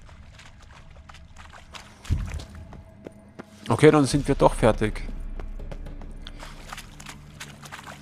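Footsteps crunch on rough stone at a steady walking pace.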